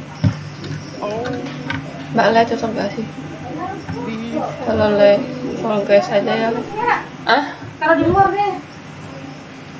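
A young woman talks with animation into a headset microphone.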